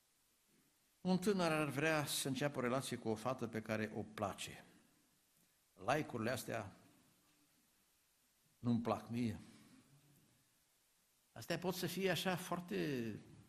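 An older man reads aloud calmly through a microphone in a room with slight echo.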